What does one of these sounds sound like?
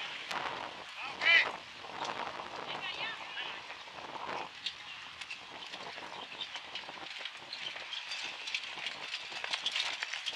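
Horse hooves trot on packed ground.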